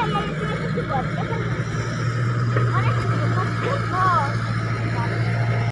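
An excavator's diesel engine rumbles steadily nearby.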